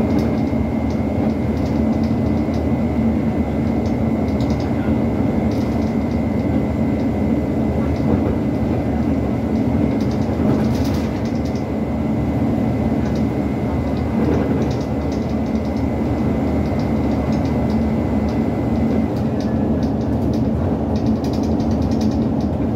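A bus engine drones steadily.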